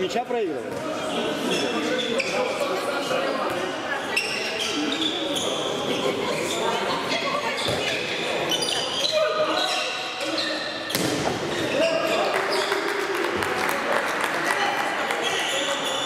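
Men shout to each other in an echoing sports hall.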